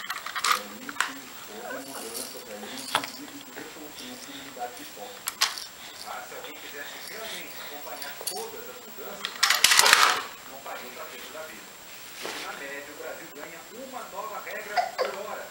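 Plastic toys clatter and knock together.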